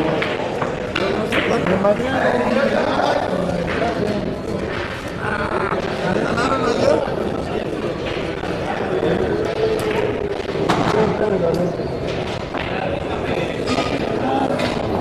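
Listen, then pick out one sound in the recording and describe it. A crowd of men and women chat in an echoing hall.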